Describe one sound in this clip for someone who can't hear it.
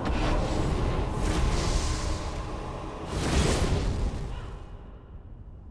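Flames roar and crackle in loud bursts, then die away.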